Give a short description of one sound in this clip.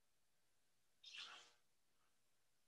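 Clothing rustles briefly up close.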